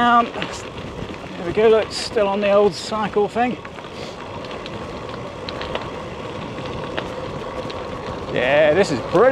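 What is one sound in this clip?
Bicycle tyres roll and crunch over a gravel path.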